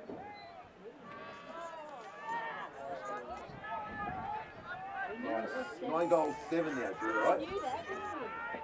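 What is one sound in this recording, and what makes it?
A crowd of spectators cheers and shouts nearby.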